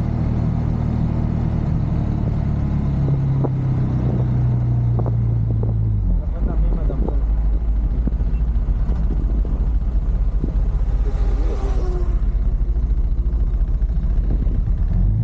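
Wind rumbles loudly against the microphone.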